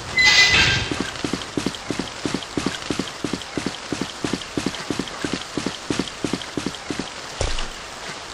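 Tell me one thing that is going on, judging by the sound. Footsteps thud on wooden boards at a steady pace.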